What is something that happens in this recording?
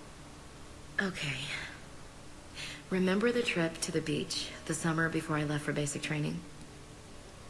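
A young woman speaks calmly and warmly, close by.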